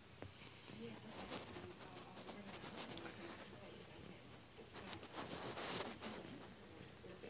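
A dog sniffs and snuffles up close.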